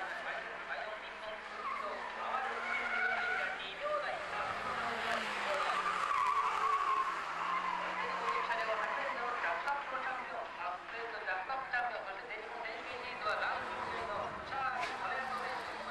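A car engine revs and whines as the car drifts around tight corners.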